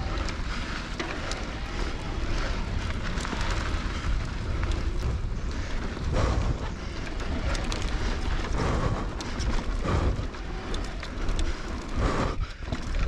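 Bicycle tyres roll and crunch fast over a dirt trail.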